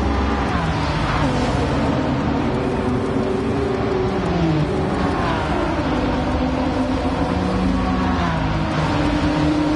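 Car engines drop sharply in pitch as gears shift.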